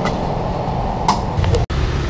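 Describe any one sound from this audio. A metal oven lid clanks.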